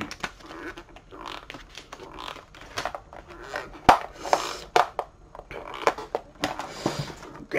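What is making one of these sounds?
A plastic game case rattles and clicks in hands.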